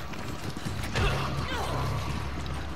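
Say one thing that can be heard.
A heavy blow lands with a sharp thump.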